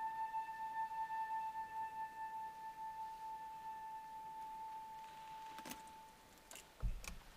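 A flute holds a long, steady note in a large, echoing hall.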